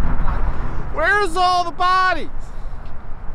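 A young man calls out in a long, wavering voice.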